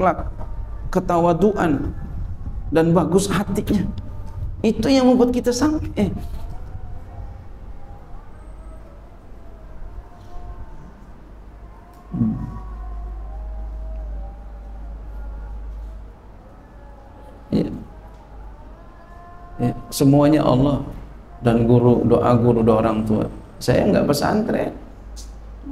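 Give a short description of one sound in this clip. A middle-aged man speaks with animation into a microphone in an echoing room.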